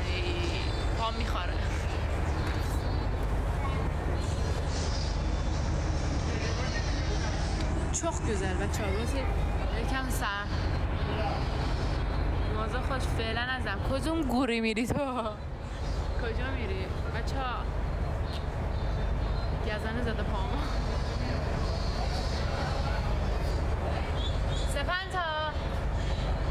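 A young woman talks casually close to a phone microphone.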